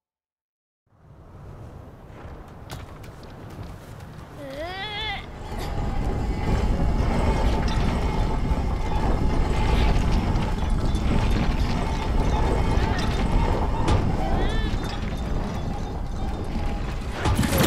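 A heavy cart rumbles and grinds as it is pushed along a track.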